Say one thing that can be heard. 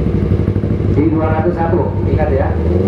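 A motorcycle engine revs up sharply in quick bursts.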